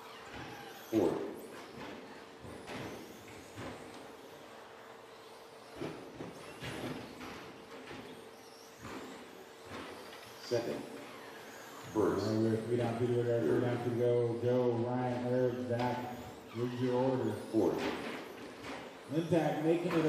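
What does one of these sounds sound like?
Small electric model cars whine and buzz as they race around a track.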